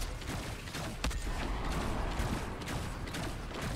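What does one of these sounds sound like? Sharp gunshot cracks go off now and then.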